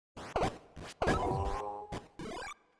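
A bright, sparkling chime of a video game effect rings out.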